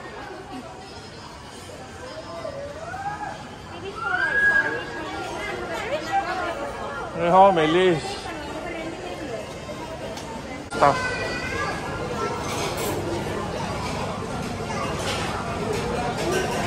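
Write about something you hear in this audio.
Many men and women chatter in a busy indoor crowd.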